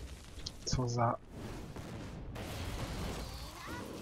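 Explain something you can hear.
A fiery explosion booms.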